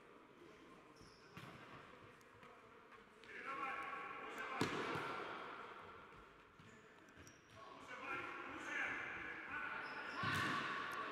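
Shoes squeak on the hard floor.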